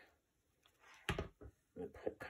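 A glue gun is set down on a table with a light knock.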